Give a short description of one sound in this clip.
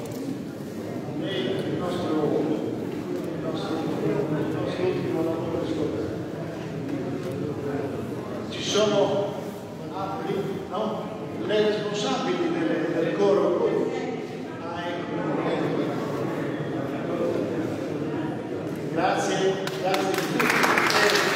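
A group of men sings together in a large echoing hall.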